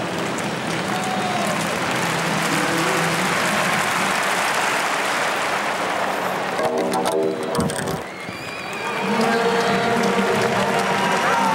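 A large crowd murmurs and cheers outdoors in a big stadium.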